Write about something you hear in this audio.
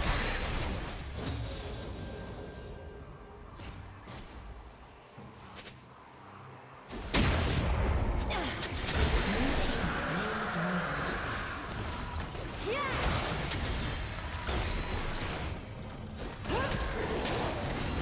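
Fantasy video game spell effects whoosh and burst during a fight.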